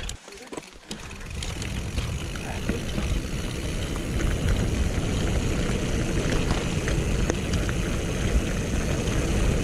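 Mountain bike tyres crunch over gravel.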